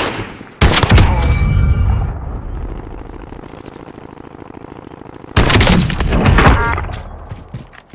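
A sniper rifle fires with loud booming shots that echo away.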